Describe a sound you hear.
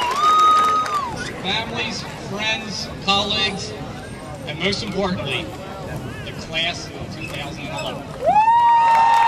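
A man speaks calmly through a microphone and loudspeakers outdoors.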